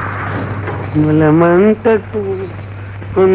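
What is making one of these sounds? A man speaks loudly and theatrically.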